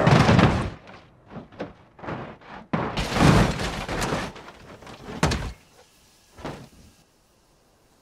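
Metal debris clatters and scrapes along the ground.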